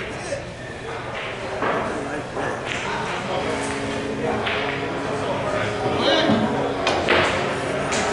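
Pool balls knock together with sharp clicks.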